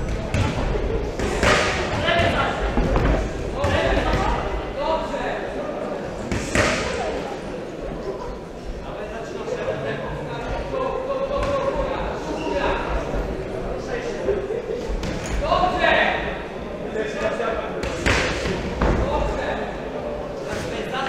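Spectators shout and cheer from ringside in an echoing hall.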